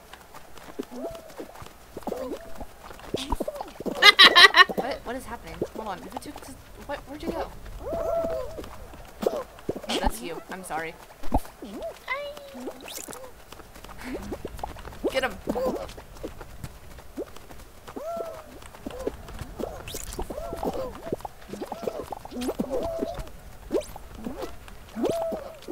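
Playful cartoon sound effects pop and squeak as game figures scuffle.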